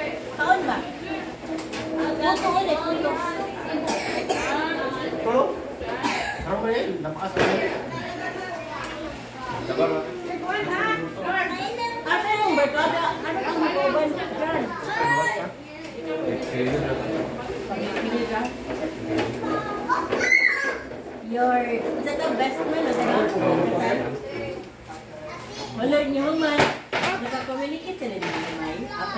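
Several men and women chat and talk over one another nearby.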